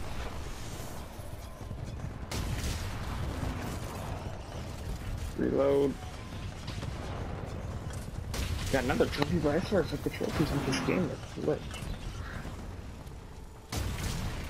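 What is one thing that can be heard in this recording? Heavy gunfire rumbles and booms in rapid bursts.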